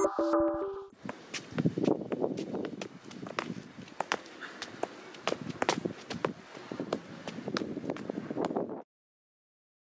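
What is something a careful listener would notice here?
A football thumps repeatedly against a foot and knee.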